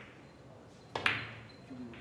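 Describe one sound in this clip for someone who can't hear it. A cue strikes a snooker ball with a sharp tap.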